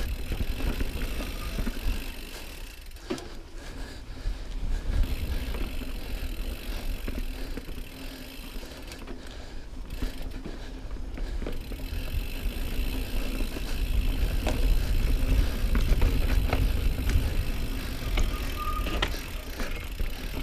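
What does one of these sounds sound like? Wind rumbles past the rider.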